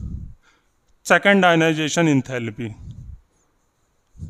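A man speaks clearly into a close microphone.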